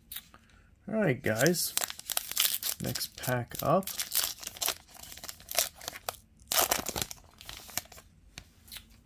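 A paper wrapper crinkles and tears.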